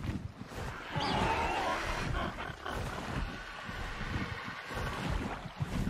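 A large bird screeches.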